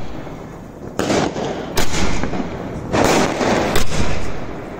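Fireworks burst with loud booming bangs outdoors.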